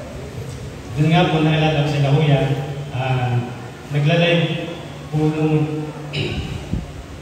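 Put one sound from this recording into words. A young man sings into a microphone, heard through loudspeakers.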